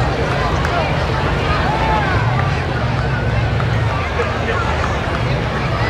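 A crowd of spectators chatters along the street outdoors.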